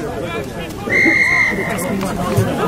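A referee's whistle blows once, sharply.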